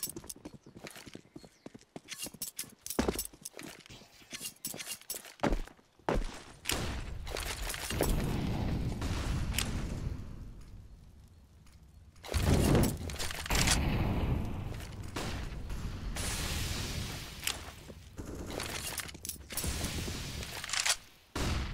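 Quick footsteps tap on hard ground.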